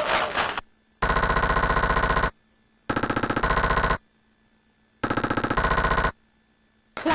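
Electronic beeps rattle rapidly in bursts as a bonus score counts up.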